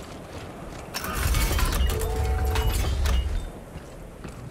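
A heavy metal door slides open with a loud mechanical rumble.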